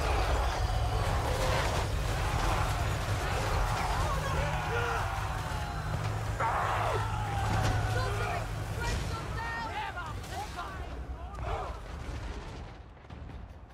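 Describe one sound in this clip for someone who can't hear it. Battle noise with clashing weapons roars loudly, then fades.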